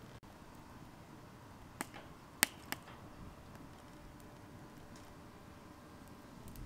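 A wood fire roars softly.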